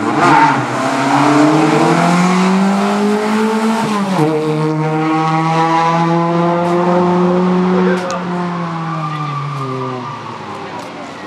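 A rally car engine roars loudly, revving up and shifting gears as the car speeds past.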